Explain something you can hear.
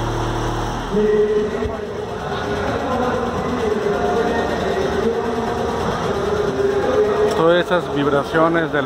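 A car sound system plays loud music.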